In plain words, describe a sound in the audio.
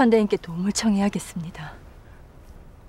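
A middle-aged woman speaks with worry, close by.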